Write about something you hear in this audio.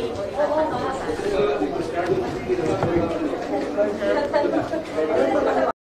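A crowd of people talks and calls out at once, close by.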